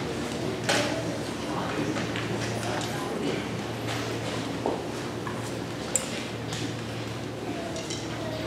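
Chairs and music stands knock and shuffle on a wooden stage in a large hall.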